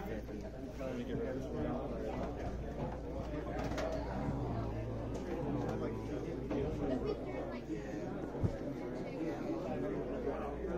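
A crowd of men and women chatter all around indoors.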